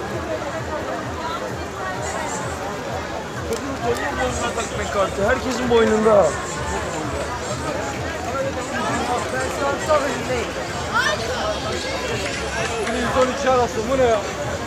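A large crowd chatters outdoors, with many voices blending together.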